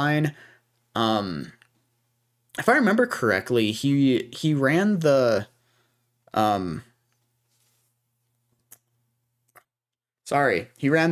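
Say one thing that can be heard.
A young man talks calmly and close into a microphone, in short bursts with pauses.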